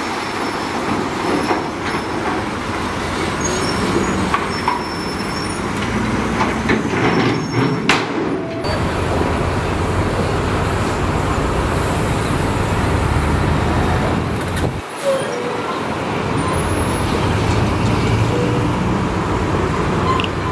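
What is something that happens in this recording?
Rocks and dirt grind and scrape under a bulldozer blade.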